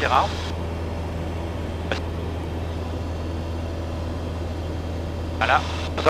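A small plane's engine drones steadily in flight.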